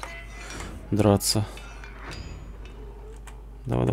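A metal door bolt slides open with a clank.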